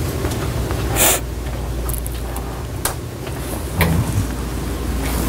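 Objects knock and clatter on a shelf nearby.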